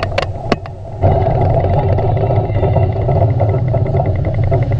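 A huge underwater blast booms and rumbles deeply.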